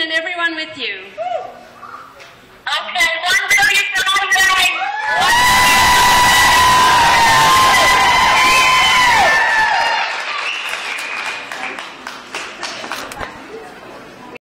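Children in a crowd talk and call out in a large echoing hall.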